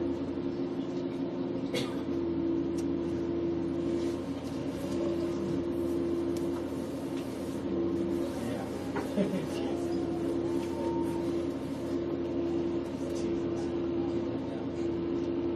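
A steady hum drones throughout.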